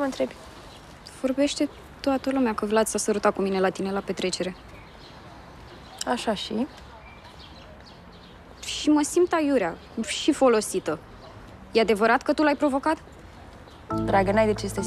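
A second young woman answers in a firm, irritated voice.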